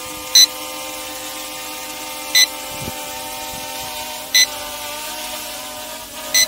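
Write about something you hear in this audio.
A small drone whines steadily overhead.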